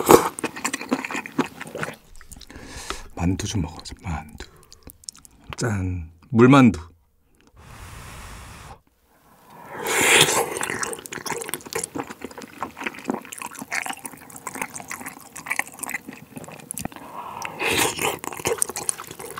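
A young man chews food wetly and noisily, close up.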